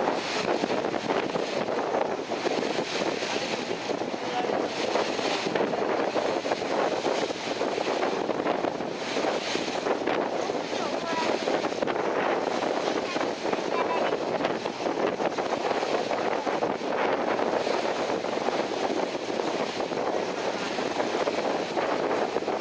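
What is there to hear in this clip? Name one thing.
Wind blows over the open water.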